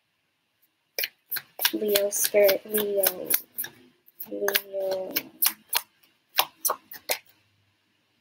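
Cards tap and click against each other.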